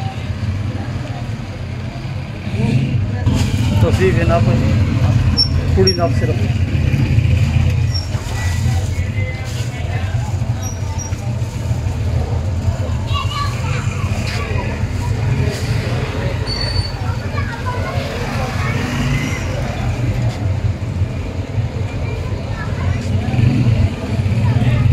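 A crowd of men talks and murmurs outdoors.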